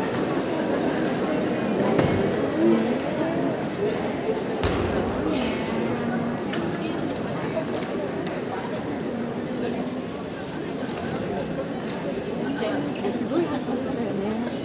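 A crowd of people chatters steadily in a large echoing hall.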